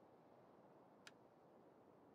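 A short interface click sounds once.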